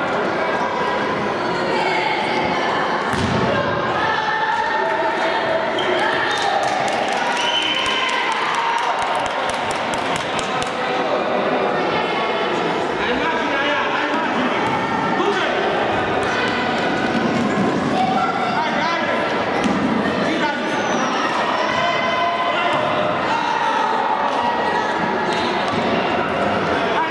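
Voices of spectators chatter and call out in a large echoing hall.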